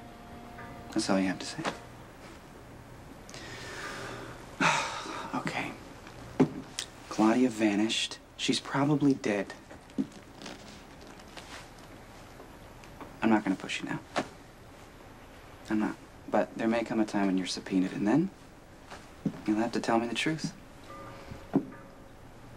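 A young man speaks softly and earnestly up close.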